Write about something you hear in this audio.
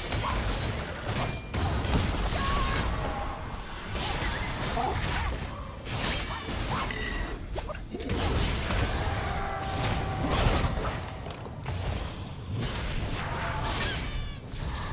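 Weapons clash and hit in quick strikes.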